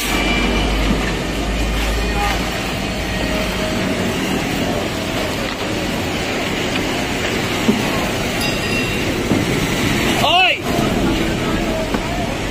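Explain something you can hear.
Workers toss debris into a dump truck's bed with clattering thuds.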